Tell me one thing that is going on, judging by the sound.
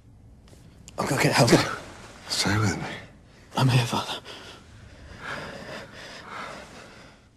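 An elderly man speaks weakly and breathlessly, close by.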